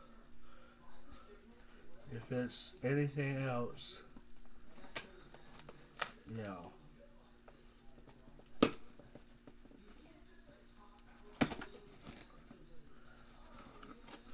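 A cardboard box is handled and rustles.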